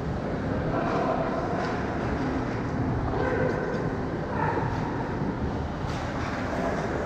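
Ice skates scrape and glide across the ice in a large echoing arena.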